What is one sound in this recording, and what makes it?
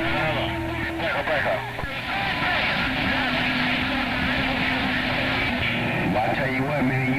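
Warbling, chirping signals squeal from a radio receiver's loudspeaker.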